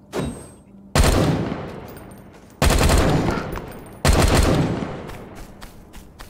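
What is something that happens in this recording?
A gun fires several loud, booming shots.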